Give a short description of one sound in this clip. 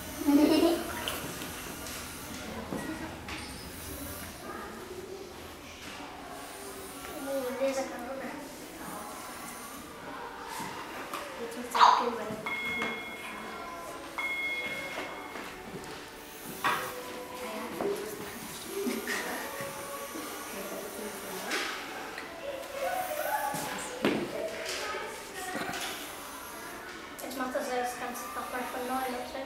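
Children talk and chatter excitedly nearby.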